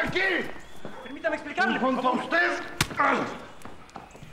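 A man speaks urgently and loudly nearby.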